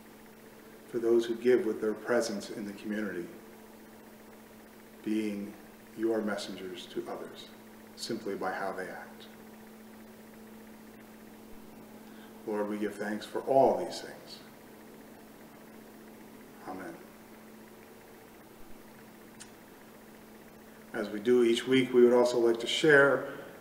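A middle-aged man speaks calmly and slowly, with long pauses.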